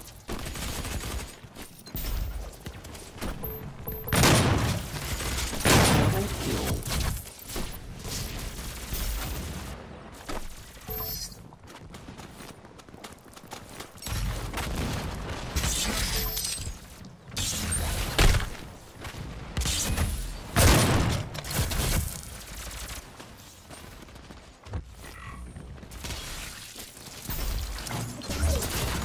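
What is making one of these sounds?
Guns fire in loud bursts with sharp blasts and explosions.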